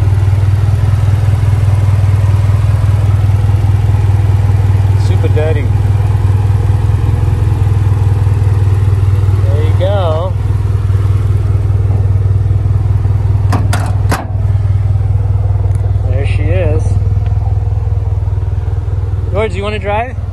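An engine idles with a steady, deep rumble.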